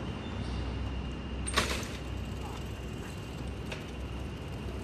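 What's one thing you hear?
A bicycle rattles as it rolls over pavement.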